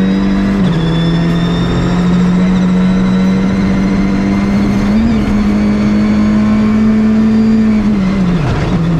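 A rally car engine roars steadily at high revs from inside the car.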